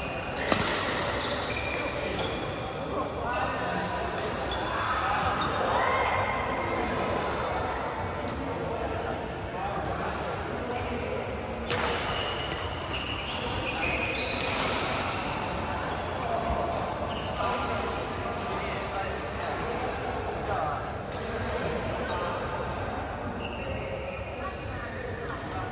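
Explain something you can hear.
Men call out and talk across the hall.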